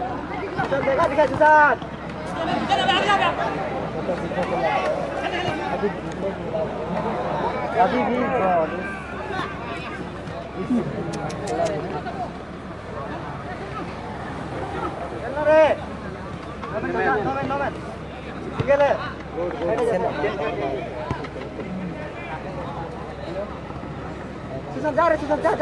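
Spectators talk and call out outdoors.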